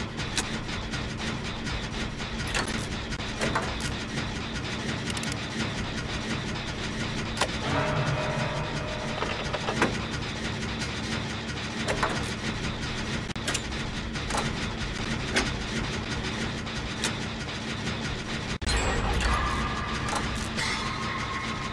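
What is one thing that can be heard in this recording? Metal parts clank and tick.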